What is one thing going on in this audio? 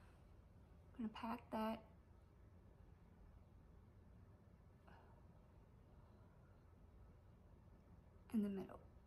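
A middle-aged woman speaks calmly and briefly, close by.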